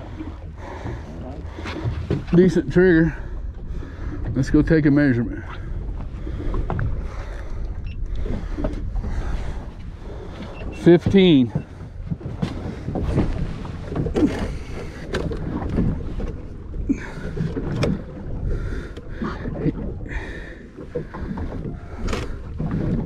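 Wind blows steadily outdoors over open water.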